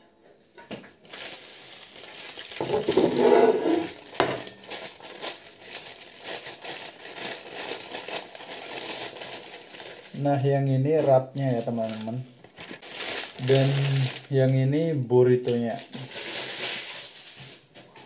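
Paper wrapping crinkles and rustles close by.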